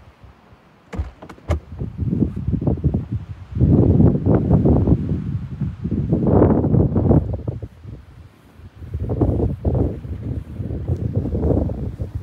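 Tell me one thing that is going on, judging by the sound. Strong wind roars in gusts outdoors.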